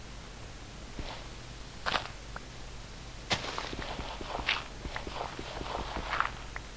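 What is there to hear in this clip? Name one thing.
Dirt crunches and scrapes in short quick bursts as it is dug out.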